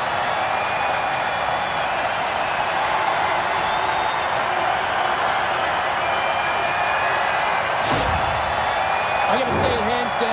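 A large crowd cheers and roars loudly in an echoing arena.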